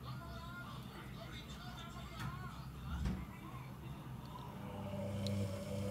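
Liquid detergent pours with a soft gurgle into a plastic cup.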